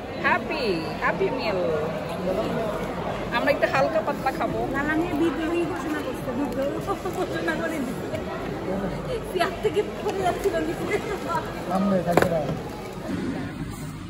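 Paper packaging rustles and crinkles.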